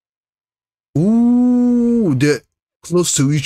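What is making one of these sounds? A young man lets out a long, drawn-out exclamation of surprise close by.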